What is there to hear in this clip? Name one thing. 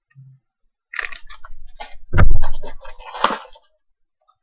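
A plastic bag crinkles in someone's hands.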